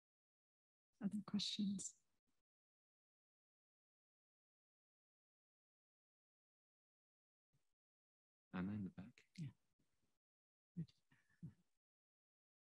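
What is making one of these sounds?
A woman speaks briefly into a microphone.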